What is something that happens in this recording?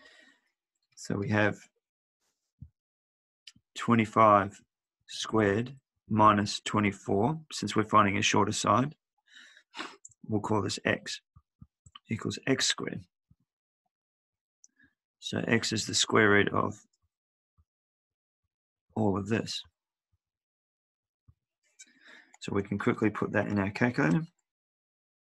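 A man explains calmly into a close microphone, with pauses.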